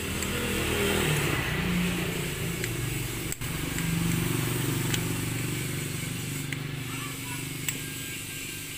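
Metal parts clink and tap as a tool is worked by hand.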